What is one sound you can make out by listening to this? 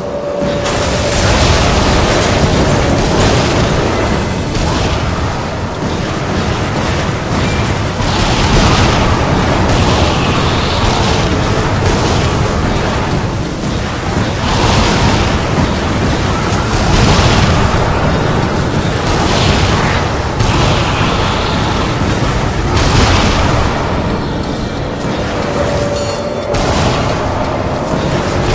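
Guns fire rapidly in a video game.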